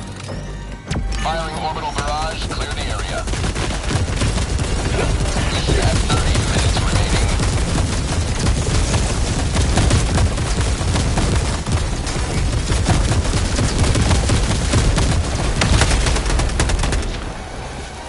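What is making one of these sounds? Heavy explosions rumble and boom repeatedly from an orbital barrage.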